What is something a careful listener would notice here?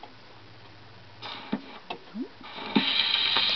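Soft knocks and clicks come as a hand handles a gramophone record.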